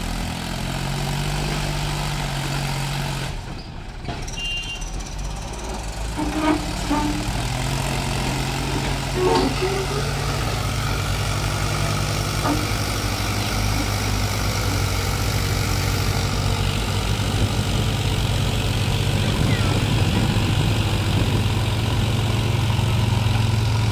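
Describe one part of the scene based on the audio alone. A tractor engine rumbles and strains loudly close by.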